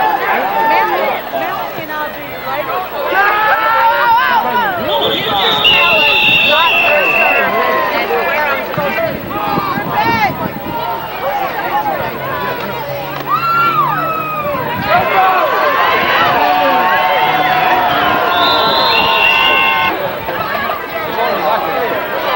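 A crowd of spectators cheers and shouts in an outdoor stadium.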